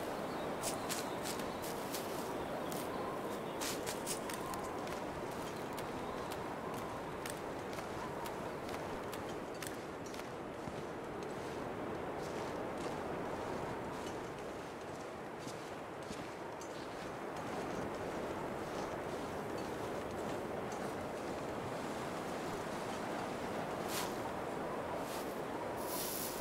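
Wind howls steadily in a snowstorm.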